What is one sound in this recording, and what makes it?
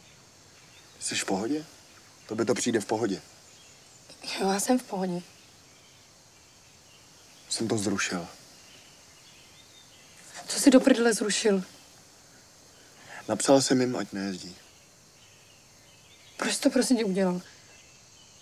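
A young man answers quietly close by.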